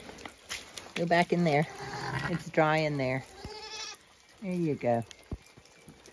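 A lamb bleats loudly and repeatedly nearby.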